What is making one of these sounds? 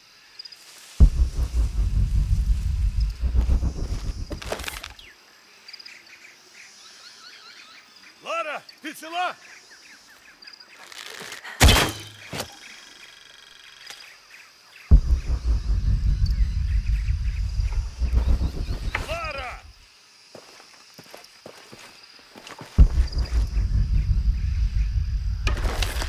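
Footsteps run quickly over ground and leaves.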